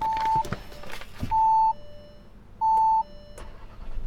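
A car's warning chime beeps several times.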